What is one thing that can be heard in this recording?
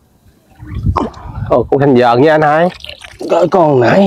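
A net splashes as it is lifted out of water.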